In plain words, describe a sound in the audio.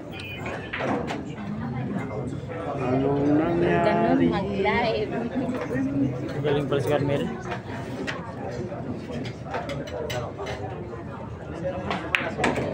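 A crowd of men and women chatters and calls out nearby.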